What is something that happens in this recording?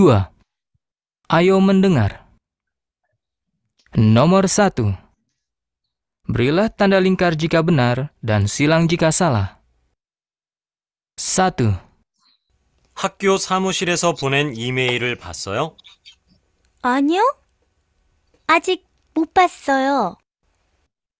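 A woman speaks calmly and clearly, heard through an online call.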